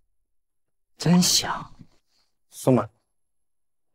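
A young man speaks with a sneer, close by.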